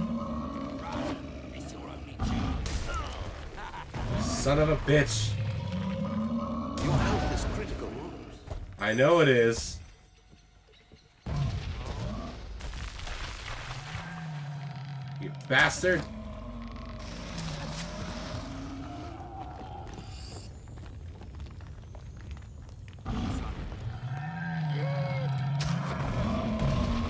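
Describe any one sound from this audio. A large beast roars and grunts.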